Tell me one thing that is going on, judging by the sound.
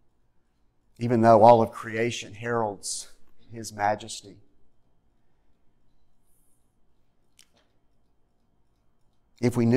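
A middle-aged man speaks calmly into a microphone in a room with light echo.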